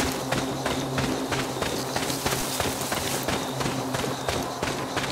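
Footsteps crunch steadily on dry, gravelly ground.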